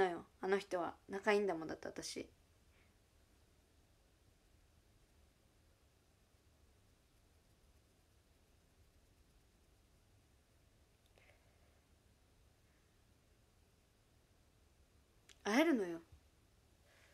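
A young woman talks close to a microphone with animation.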